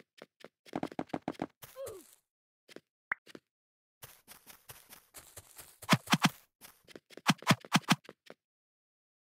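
Footsteps patter quickly on blocks.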